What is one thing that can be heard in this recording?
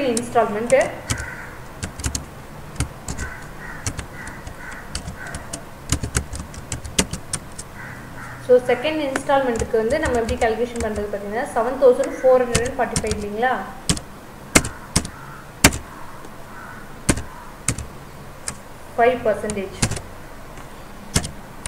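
Keyboard keys click as someone types.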